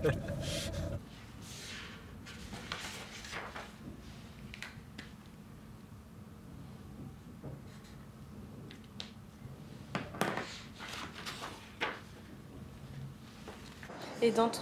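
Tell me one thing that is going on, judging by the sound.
Paper rustles as sheets are handled and turned.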